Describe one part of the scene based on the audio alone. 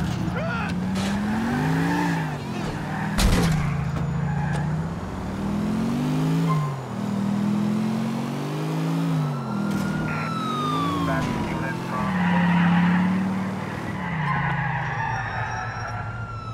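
A truck engine revs up and down as it drives.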